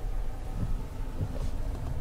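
A windshield wiper swipes across the glass.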